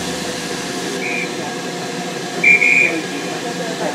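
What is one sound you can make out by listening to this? A railway whistle blows short, shrill blasts.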